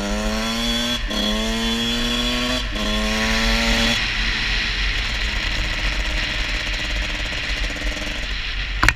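Wind rushes loudly past a rider.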